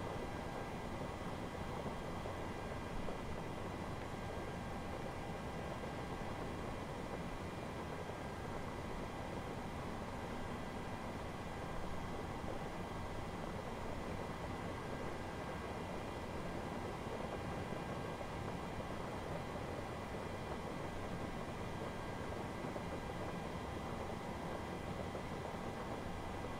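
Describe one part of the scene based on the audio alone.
Rain patters steadily on a windshield.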